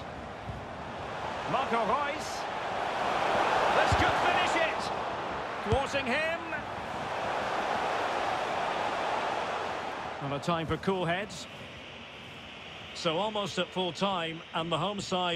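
A large stadium crowd roars and cheers steadily.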